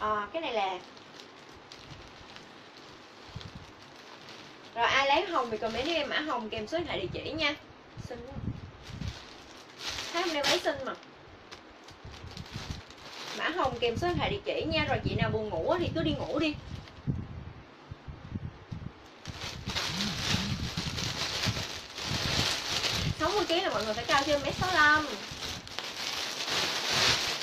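Fabric rustles as clothes are handled.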